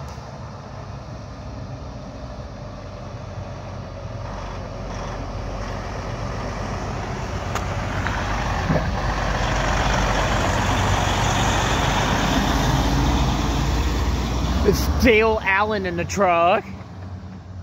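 A heavy truck's diesel engine rumbles, growing louder as it approaches and passes close by.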